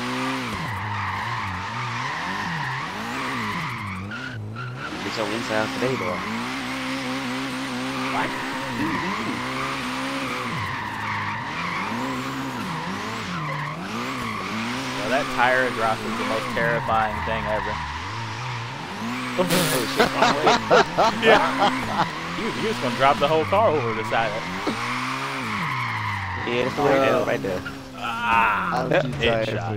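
A car engine revs up and down repeatedly.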